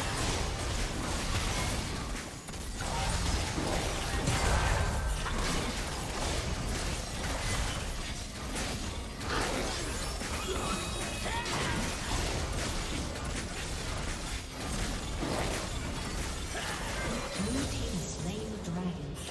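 Fantasy battle sound effects of spells and sword strikes crackle and whoosh in quick succession.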